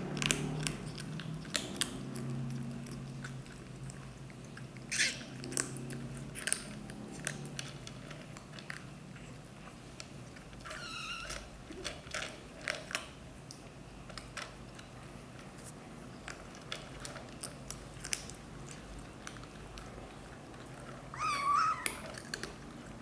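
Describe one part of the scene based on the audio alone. Kittens crunch dry food with quick, sharp clicks.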